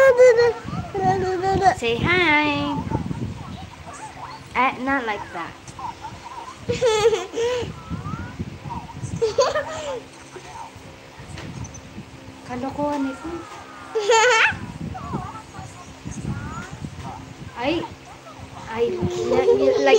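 A young child talks and squeals playfully close by.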